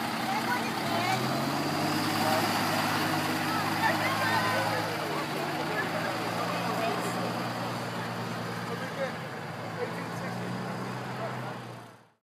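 A fire engine's diesel engine rumbles close by.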